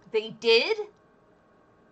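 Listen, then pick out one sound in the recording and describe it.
A young woman laughs into a microphone.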